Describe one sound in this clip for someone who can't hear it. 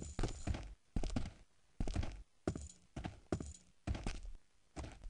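Blows strike in a quick, repeated rhythm of short bursts.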